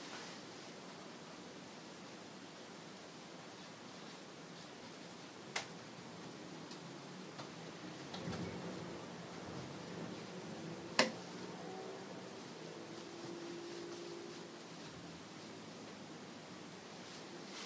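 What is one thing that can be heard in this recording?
A paintbrush dabs and brushes softly against canvas.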